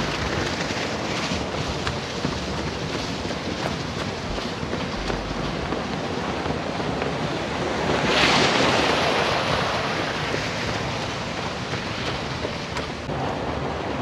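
A young man talks close to the microphone outdoors.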